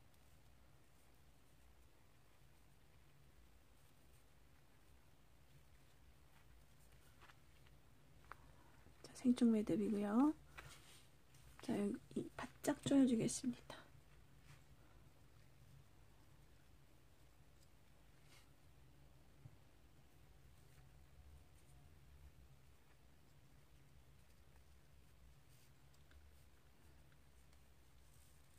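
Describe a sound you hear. A thin cord rustles and slides softly between fingers.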